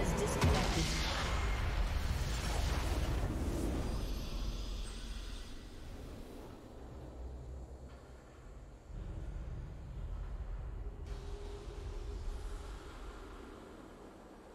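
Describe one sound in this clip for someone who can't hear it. A triumphant victory fanfare plays with a whooshing burst.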